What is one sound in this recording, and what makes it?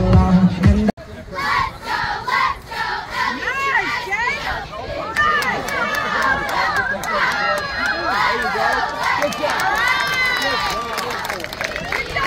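A group of young girls chant and shout cheers together outdoors.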